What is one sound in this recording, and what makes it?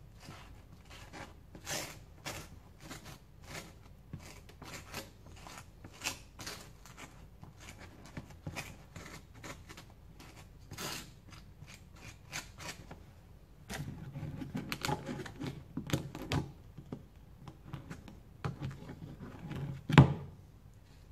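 Hands knock and clatter objects on a counter.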